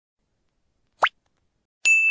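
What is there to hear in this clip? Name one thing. A mouse button clicks once.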